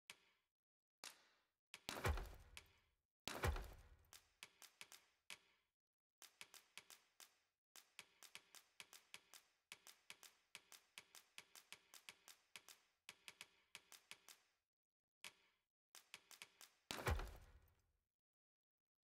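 Short interface clicks tick in quick runs, with a few louder chimes.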